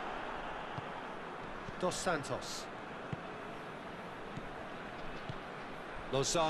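A stadium crowd murmurs and roars steadily.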